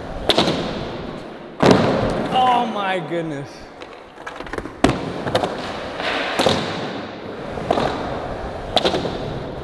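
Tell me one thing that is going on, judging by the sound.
Skateboard wheels roll and rumble over smooth concrete.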